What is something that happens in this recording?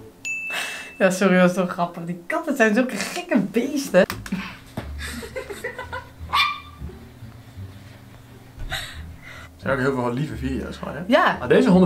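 A young woman laughs and talks close to a microphone.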